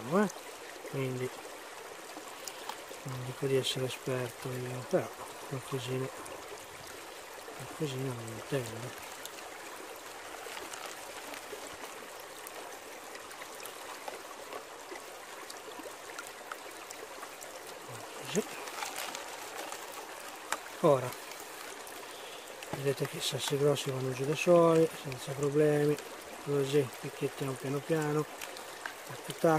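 Water sloshes and swirls in a shallow pan.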